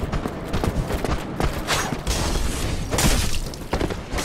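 A sword swings with a sharp whoosh.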